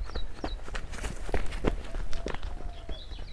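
A man runs on a dirt path, his footsteps thudding quickly.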